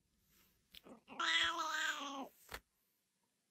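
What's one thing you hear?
A cat meows.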